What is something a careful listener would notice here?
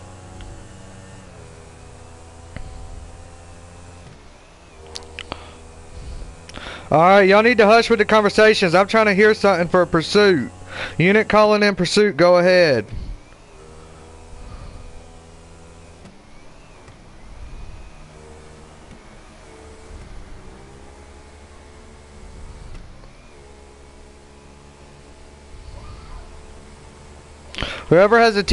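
A motorcycle engine hums steadily.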